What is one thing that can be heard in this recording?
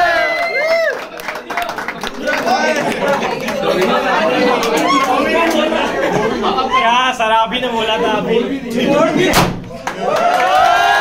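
A group of young people cheer and chatter excitedly.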